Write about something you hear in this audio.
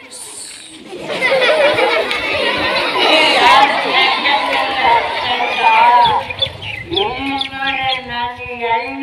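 A young boy performs energetically with his voice through a microphone.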